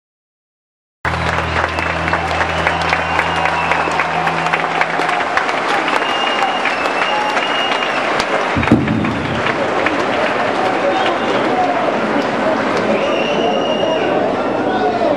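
A percussionist plays drums and cymbals in a lively rhythm.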